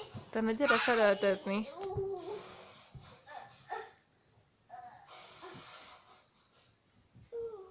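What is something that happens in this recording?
Bedding rustles as a child moves under a blanket.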